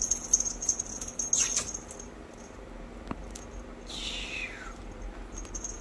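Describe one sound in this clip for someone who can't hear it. A small puppy chews and squeaks a rubber toy.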